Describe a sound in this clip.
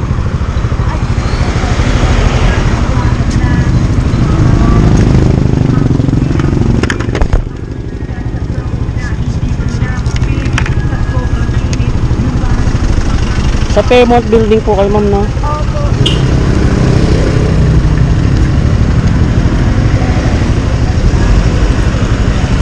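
A motorcycle engine idles close by with a low, steady rumble.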